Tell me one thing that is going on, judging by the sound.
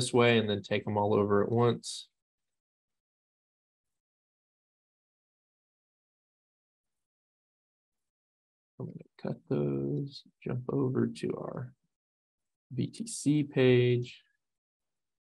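A man talks calmly and close into a microphone, in short bursts with pauses.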